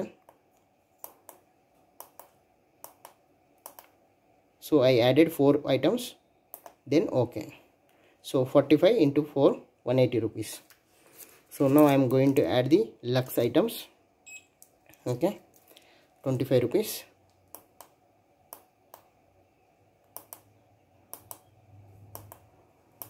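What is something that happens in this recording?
Small push buttons click under a finger.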